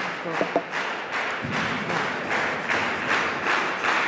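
A man rubs chalk onto his hands.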